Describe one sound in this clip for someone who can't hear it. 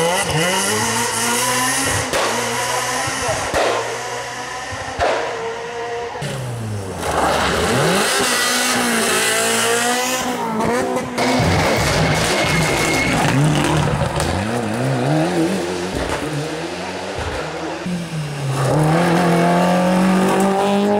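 A rally car engine revs hard and roars past, rising and falling in pitch as gears shift.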